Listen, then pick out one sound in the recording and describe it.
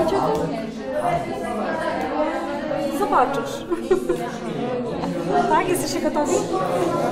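Children and teenagers chatter all around in a busy room.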